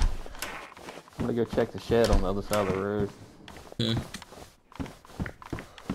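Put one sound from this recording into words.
Footsteps thud on wooden stairs and floorboards.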